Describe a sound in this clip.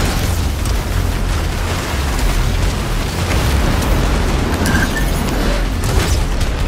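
Energy blasts whoosh through the air in a rapid stream.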